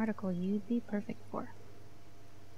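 A young woman speaks calmly and briefly.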